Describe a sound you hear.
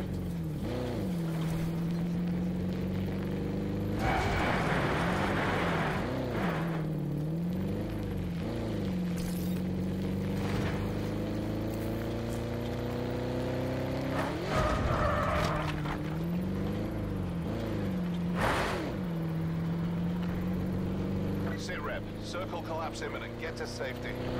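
A car engine hums steadily, rising and falling in pitch as it revs.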